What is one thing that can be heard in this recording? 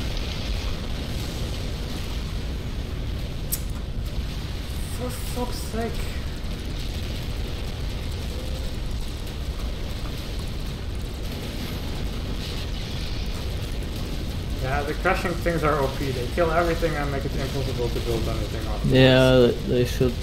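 Explosions boom and rumble deeply.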